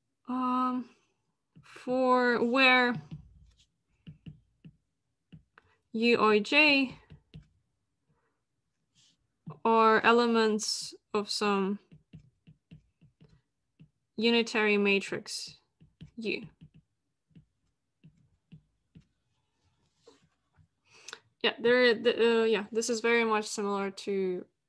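A young woman speaks calmly over an online call, in short phrases with pauses.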